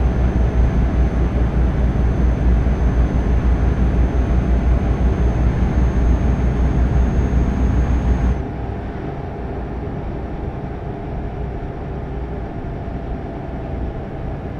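Tyres roll on the road surface with a steady hum.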